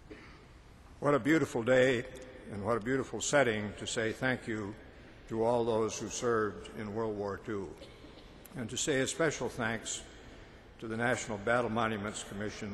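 An elderly man speaks slowly and solemnly into a microphone in a large echoing hall.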